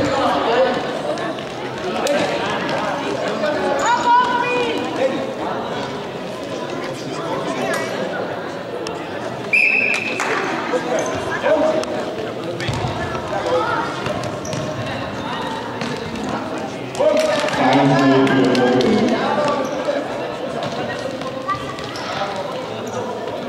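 A ball thuds on the floor as it is kicked.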